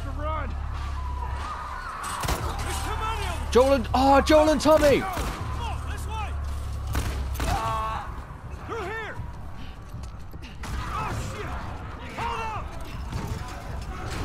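A man speaks urgently, close by.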